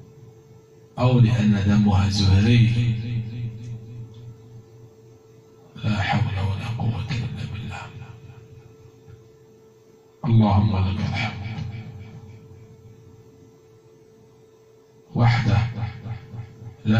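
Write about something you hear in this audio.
A woman speaks in short bursts close by, in a room with some echo.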